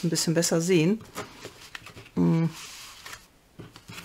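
Sheets of paper rustle and slide across a table.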